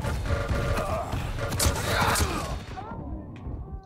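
Rapid gunshots and blasts crack from a video game.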